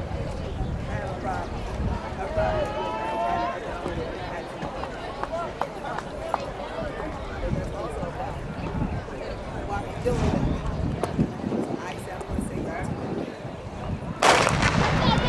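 A crowd chatters quietly outdoors.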